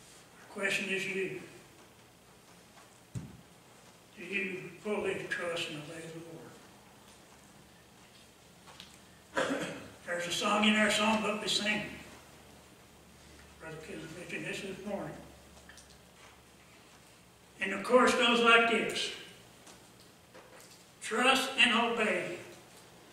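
An elderly man speaks slowly and calmly into a microphone, pausing between phrases.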